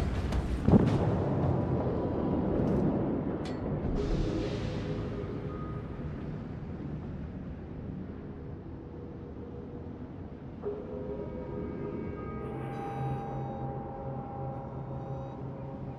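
Water rushes steadily along a ship's hull.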